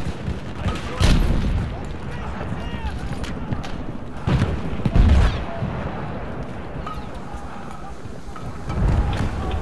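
Explosions boom nearby with deep rumbling thuds.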